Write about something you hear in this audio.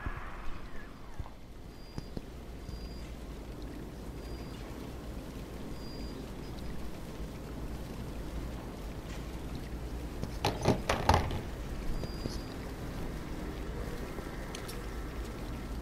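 Water trickles and splashes steadily.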